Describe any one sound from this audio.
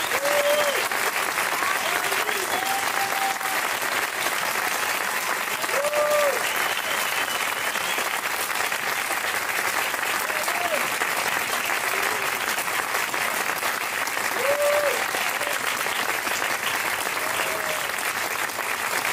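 An audience claps and applauds steadily in a large hall.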